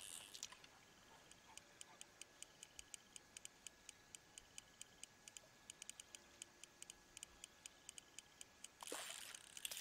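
A fishing reel clicks quickly and steadily.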